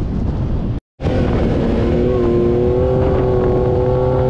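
An off-road buggy's engine drones steadily at speed.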